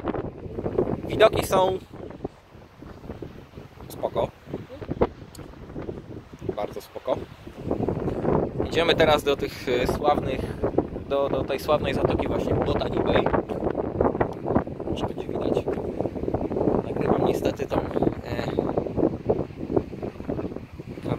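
Wind blows over the microphone outdoors.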